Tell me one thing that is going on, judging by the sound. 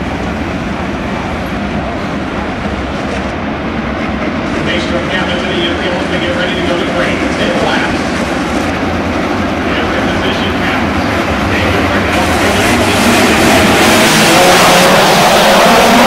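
Racing car engines roar loudly and grow louder as a pack accelerates.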